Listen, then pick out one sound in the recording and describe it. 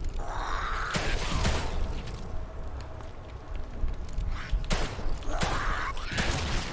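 Pistol shots ring out loudly.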